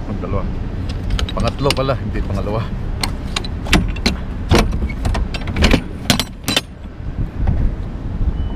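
Metal door latches clank and bang on a trailer.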